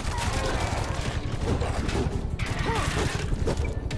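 A heavy blunt weapon smacks into a body.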